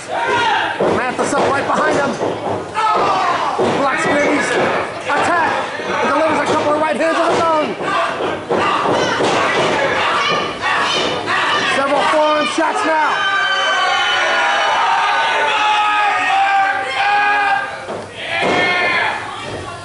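A crowd shouts and cheers loudly in an echoing hall.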